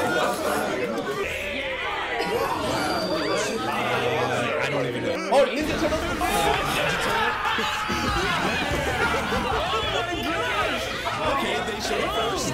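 Several young men and women laugh loudly and cheer.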